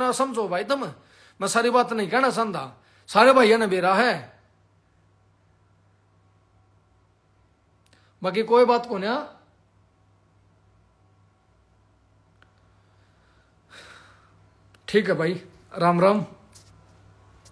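A man speaks close to a microphone in short, emphatic bursts with pauses between.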